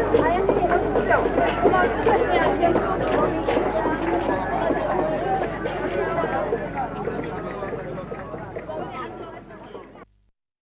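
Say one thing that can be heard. A group of young women sings together outdoors, slowly fading away.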